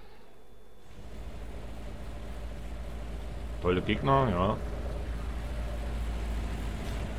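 Car engines idle with a low, steady rumble.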